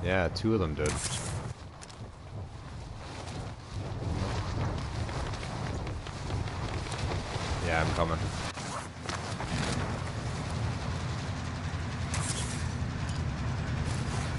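Wind rushes loudly during a fast fall through the air.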